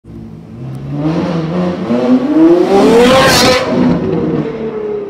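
A sports car engine roars loudly as the car accelerates past close by.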